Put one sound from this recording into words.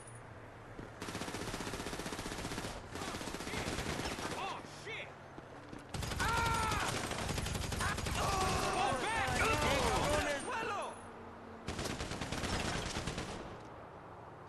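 Automatic rifle fire rattles in short bursts.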